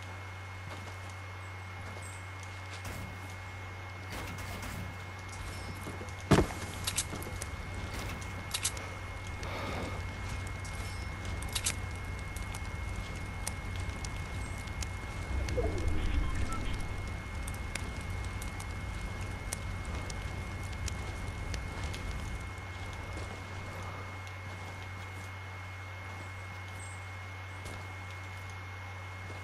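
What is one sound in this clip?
Footsteps patter on grass and wooden floors.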